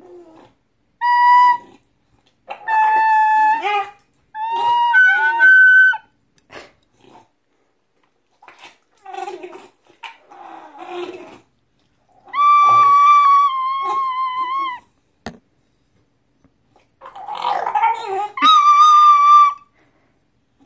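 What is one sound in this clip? A bulldog howls and whines in high, drawn-out cries close by.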